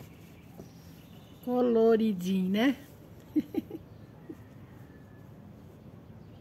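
Yarn rustles softly as a crochet hook works through it.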